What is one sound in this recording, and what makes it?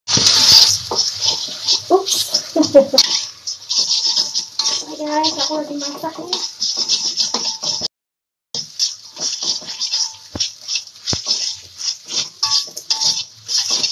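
Eggs sizzle loudly in hot oil in a pan.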